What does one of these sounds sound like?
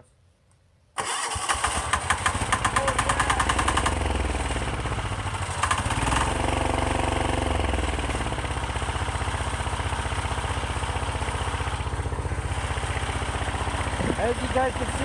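A small diesel engine starts and runs with a loud, steady clatter.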